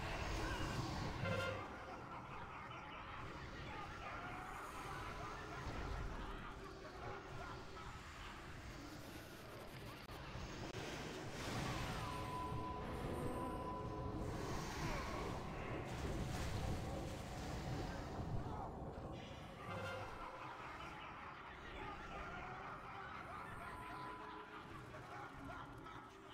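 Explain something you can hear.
Fantasy battle sounds clash and boom, with spells whooshing and crackling.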